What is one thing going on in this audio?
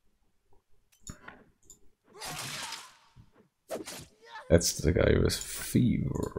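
Swords clash in a game battle.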